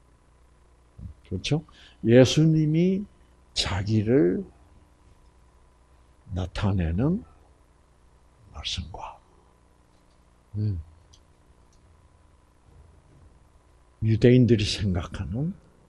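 An elderly man speaks with animation, pausing between phrases.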